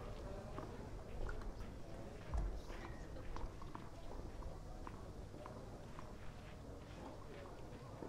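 A tennis ball bounces on a clay court before a serve.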